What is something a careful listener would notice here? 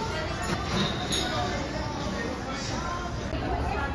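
Metal cutlery clinks against a table.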